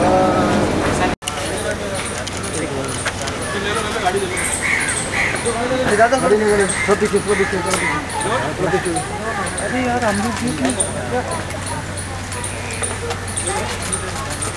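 Several men talk over one another nearby, outdoors.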